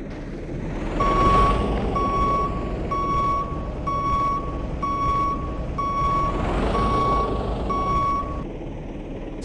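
A warning beeper sounds in quick, even beeps.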